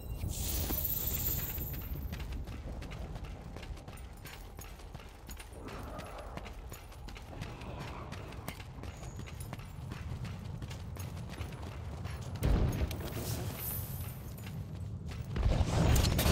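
Heavy armoured footsteps crunch over rocky ground.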